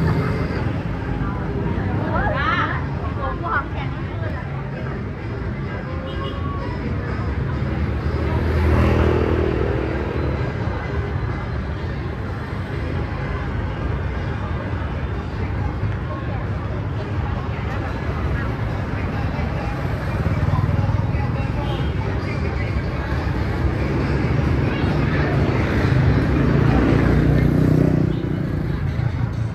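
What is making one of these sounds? Motorbikes ride past with buzzing engines.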